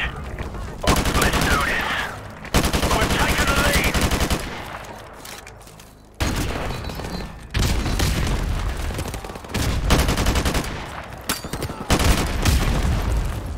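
A rifle fires in rapid automatic bursts, loud and close.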